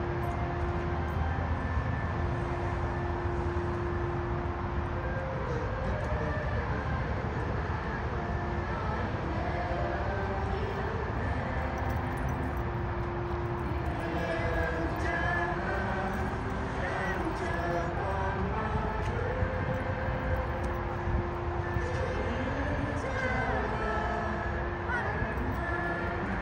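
A crowd sings a hymn slowly outdoors.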